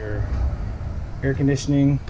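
A plastic wall switch clicks.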